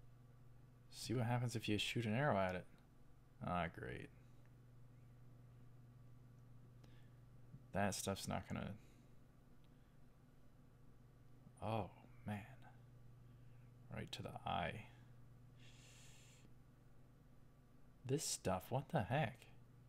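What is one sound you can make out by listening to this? A young man speaks calmly into a microphone in short bursts, close by.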